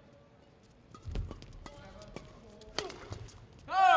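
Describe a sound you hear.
A shuttlecock is struck sharply with a racket.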